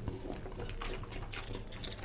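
A lime squeezes and drips juice.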